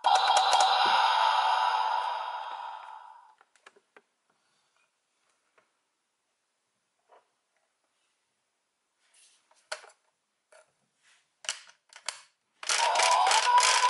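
A toy plays loud electronic sound effects.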